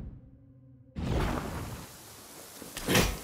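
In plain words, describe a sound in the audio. A staff whooshes through the air.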